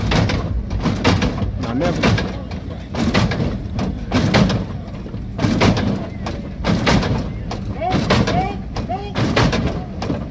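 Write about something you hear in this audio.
A car's hydraulic suspension pumps and clanks as the car bounces.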